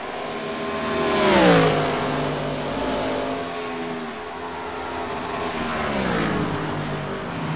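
A race car roars past close by, its engine pitch dropping as it goes.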